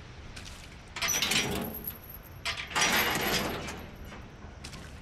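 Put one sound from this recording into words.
A metal gate rattles and creaks as it is pushed.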